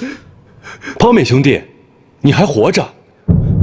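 A man speaks with emotion.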